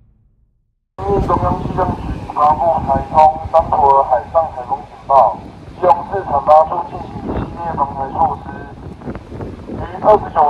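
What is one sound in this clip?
A woman calls out through a megaphone.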